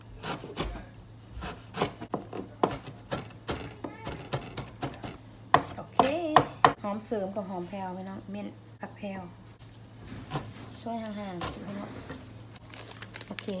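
A cleaver chops herbs on a plastic cutting board.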